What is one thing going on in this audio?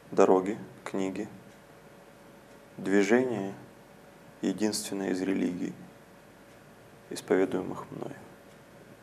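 A young man speaks calmly into a close microphone, pausing often.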